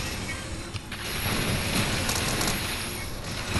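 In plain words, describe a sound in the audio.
A futuristic gun fires with a crackling buzz.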